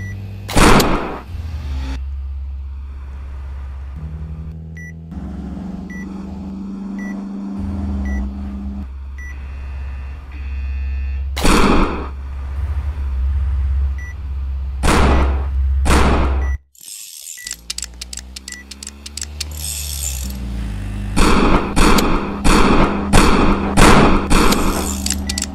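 Loud gunshots ring out in sharp bursts.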